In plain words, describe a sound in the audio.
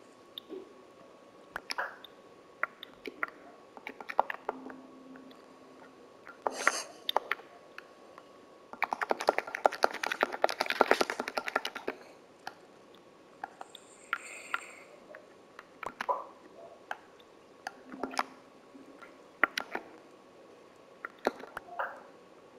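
Soft game menu clicks tick now and then as items are moved and crafted.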